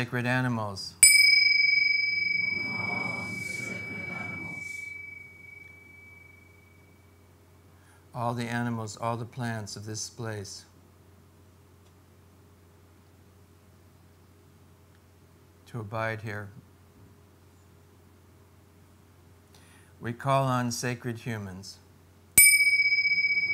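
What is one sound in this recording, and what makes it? Small hand cymbals are struck together and ring out in a long, slowly fading tone.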